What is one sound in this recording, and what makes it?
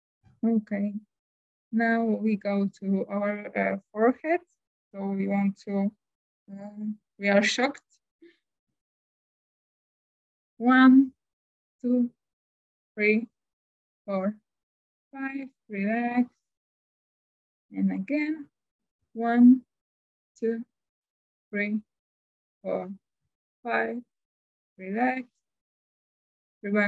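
A woman speaks calmly through an online call, with pauses between phrases.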